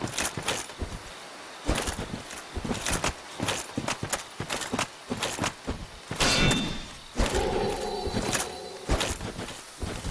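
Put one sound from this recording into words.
Armoured footsteps thud on grass.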